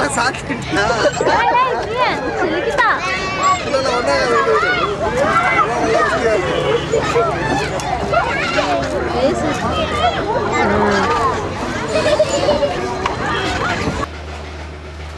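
Young children squeal and chatter excitedly.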